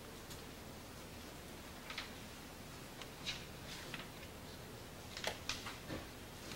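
An overhead projector fan hums steadily.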